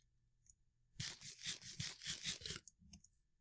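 A character munches food in quick crunchy bites.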